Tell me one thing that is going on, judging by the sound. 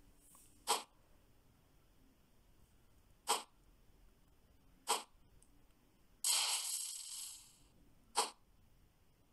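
Sharp sword strikes clang in short bursts.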